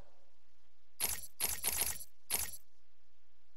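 Short electronic menu clicks sound in quick succession.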